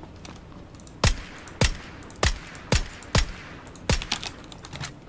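A rifle fires several loud, sharp shots that echo briefly.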